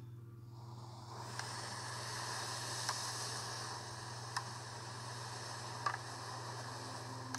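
Game sounds play through the small speakers of a handheld console.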